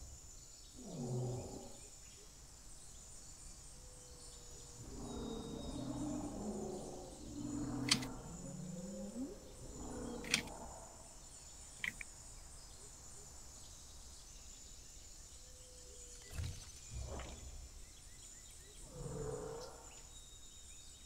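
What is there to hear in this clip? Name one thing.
A large creature gives low, groaning calls now and then.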